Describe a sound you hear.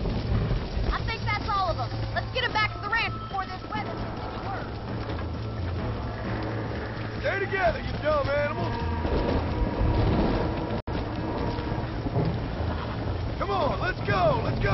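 Cattle low and bellow nearby.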